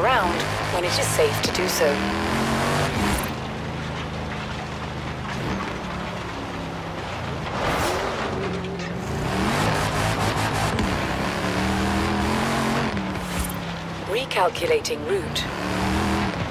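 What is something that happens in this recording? Branches and bushes crash against the car.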